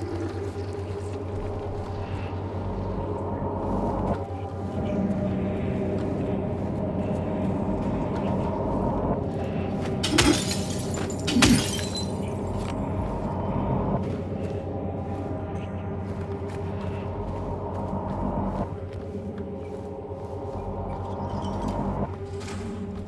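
Eerie game music and low droning ambience play through a small speaker.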